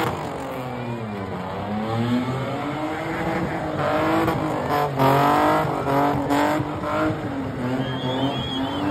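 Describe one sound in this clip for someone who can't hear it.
A crowd shouts and cheers at a distance outdoors.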